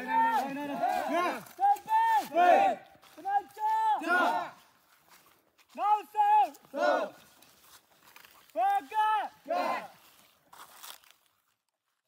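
A man shouts commands loudly outdoors, in short bursts.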